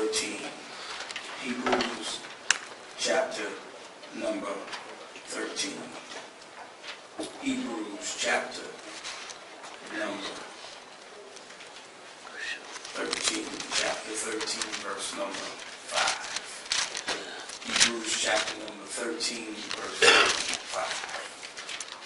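A man preaches with feeling into a microphone in an echoing room.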